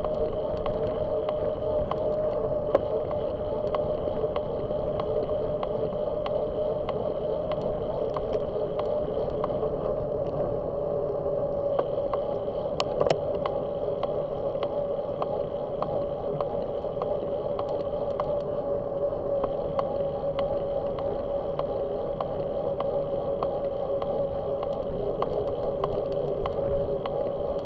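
Tyres rumble on a paved road.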